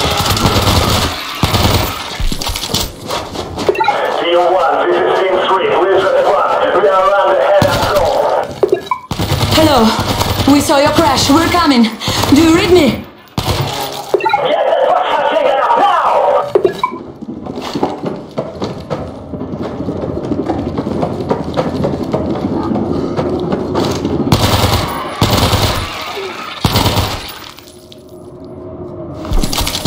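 A rifle fires sharp shots in short bursts.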